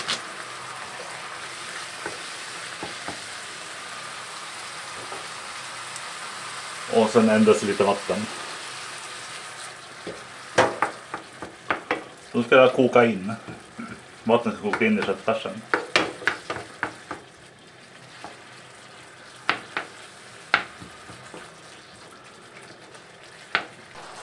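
Ground meat sizzles steadily in a hot pan.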